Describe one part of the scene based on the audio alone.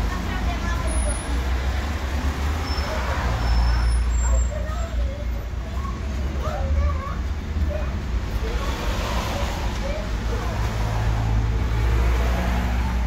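A bus engine idles with a low rumble.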